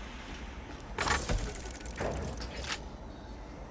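A metal crate lid clanks open.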